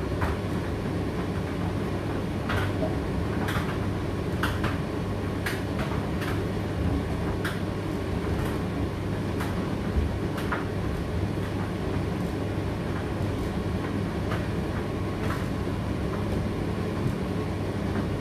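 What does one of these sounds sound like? A condenser tumble dryer hums as it runs.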